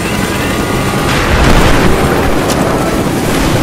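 A rock blasts apart with a loud explosion.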